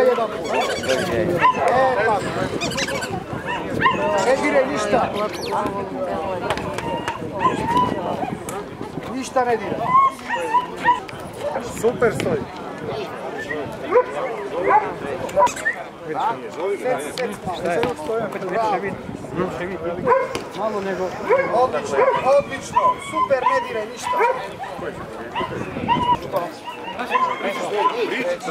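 A crowd of men and women murmurs in the background.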